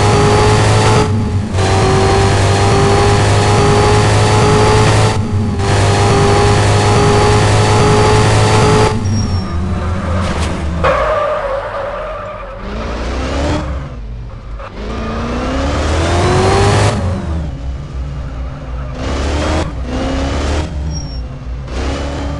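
A car engine hums steadily, rising and falling in pitch as it speeds up and slows down.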